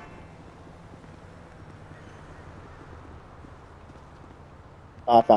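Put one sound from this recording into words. Footsteps shuffle softly on pavement.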